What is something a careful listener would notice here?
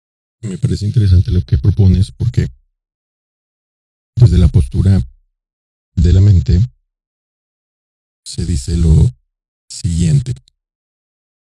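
A man speaks into a close microphone, in short bursts with pauses.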